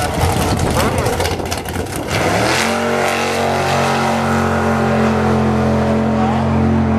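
A loud car engine crackles, then roars up to a steady high drone.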